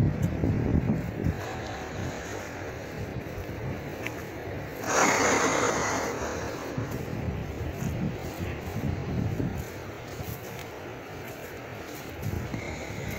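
Footsteps thud steadily on a soft dirt path.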